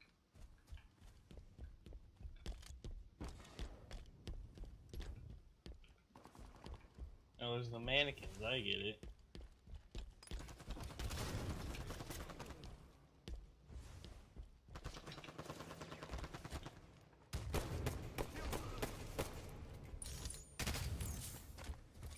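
Footsteps tap quickly across hard floors.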